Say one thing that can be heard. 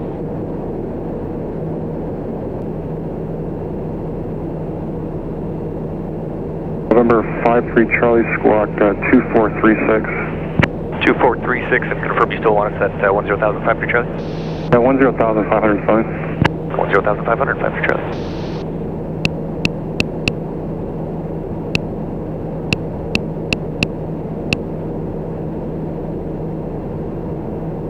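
A small plane's engine drones steadily, heard from inside the cabin.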